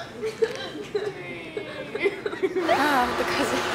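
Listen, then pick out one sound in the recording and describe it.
Young women laugh and talk close by.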